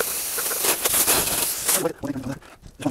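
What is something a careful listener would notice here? Water sprays hard from a hose nozzle.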